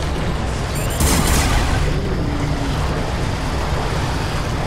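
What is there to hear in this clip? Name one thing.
Fire roars in a burst of flame.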